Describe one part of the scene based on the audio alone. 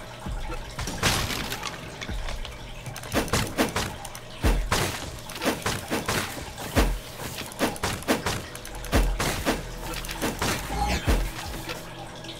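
Sword slashes whoosh and strike creatures in quick bursts.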